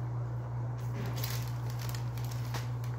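Paper packaging rustles and crinkles.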